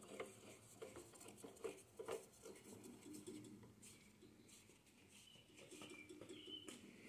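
A drill press feed handle clicks and rattles as it is turned.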